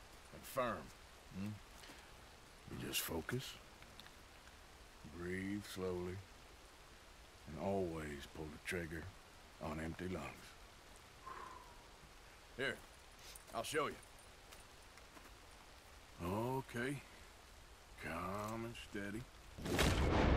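A man speaks calmly and quietly.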